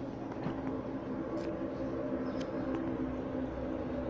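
A paper bag rustles close by.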